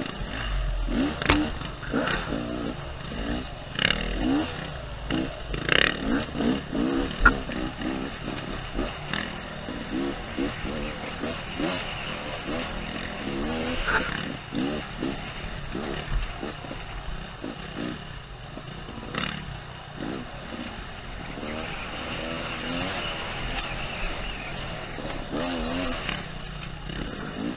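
A dirt bike engine revs and drones up close, rising and falling as it accelerates.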